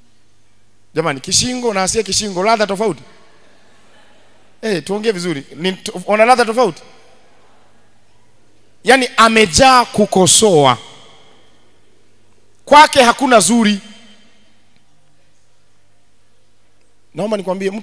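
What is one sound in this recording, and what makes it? A young man preaches with animation into a microphone, in bursts with pauses.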